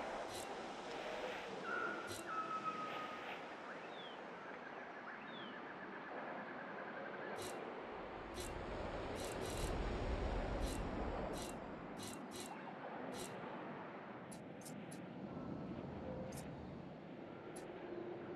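Soft game menu clicks sound now and then.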